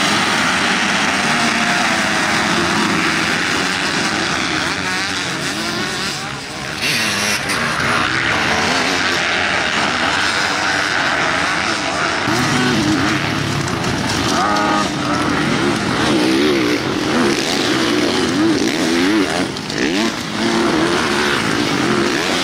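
Several dirt bike engines rev and whine loudly as riders race past outdoors.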